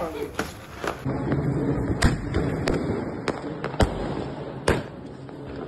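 Firecrackers go off with sharp, loud bangs.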